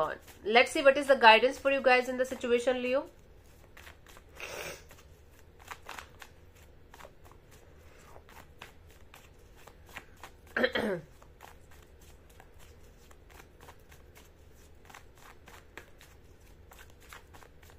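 Playing cards riffle and flick softly in a hand.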